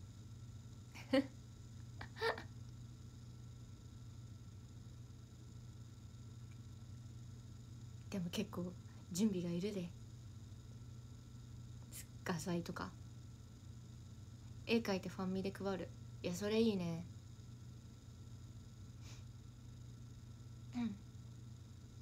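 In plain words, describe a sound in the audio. A young woman speaks softly and casually in short bursts, close to the microphone.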